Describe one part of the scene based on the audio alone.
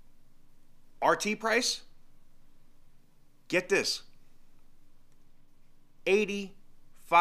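A middle-aged man speaks in short bursts, close to a microphone.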